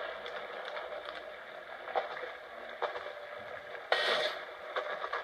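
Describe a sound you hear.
Electronic game sounds play from a television speaker, with short whooshing bursts.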